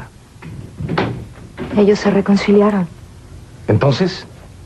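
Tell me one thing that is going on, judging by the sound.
A second woman speaks firmly, close by.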